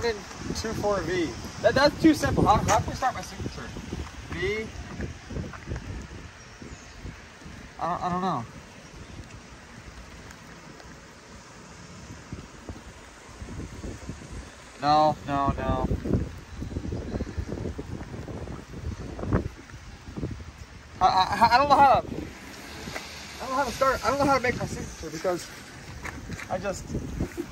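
A young man talks close by, casually.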